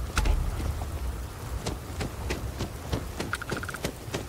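Footsteps tread on hard ground.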